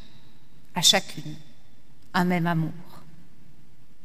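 A woman speaks formally into a microphone, heard in a large echoing hall.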